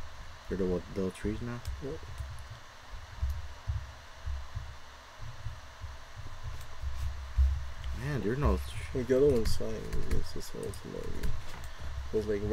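Leaves rustle and crunch as they are broken, again and again.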